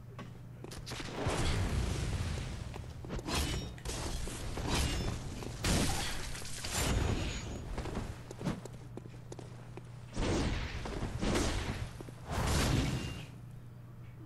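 Heavy blades swing and clash in a fight, with loud bursts of impact.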